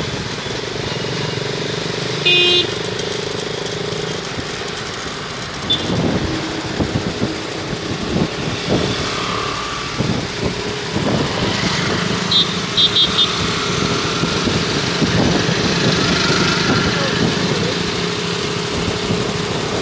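Traffic passes by on a busy road.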